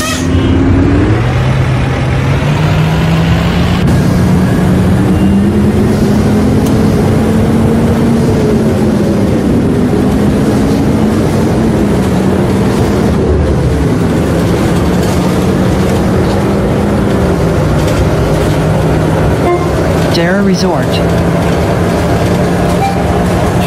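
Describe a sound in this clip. A bus engine revs and whines, rising and falling in pitch as the bus drives.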